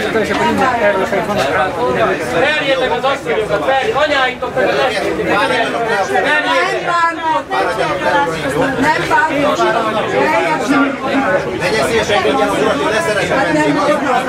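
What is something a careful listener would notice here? A woman speaks up loudly and with agitation close by.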